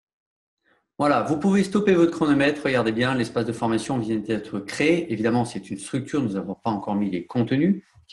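A man speaks with animation, close to a microphone.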